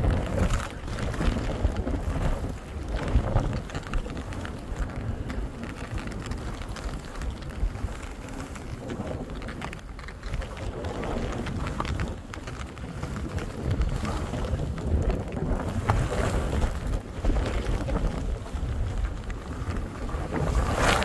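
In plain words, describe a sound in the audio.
Skis hiss and scrape over soft snow close by.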